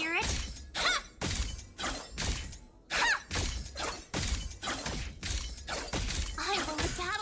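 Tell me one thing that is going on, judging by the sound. Game skill effects whoosh and blast repeatedly.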